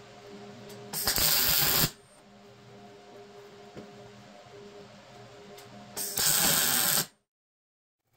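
A welder crackles and hisses in short bursts.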